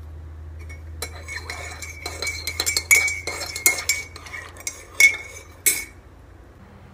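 A spoon stirs and clinks against the inside of a mug.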